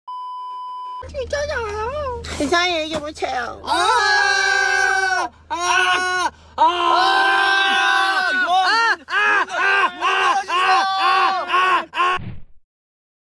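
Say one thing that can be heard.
A young man sings loudly and playfully.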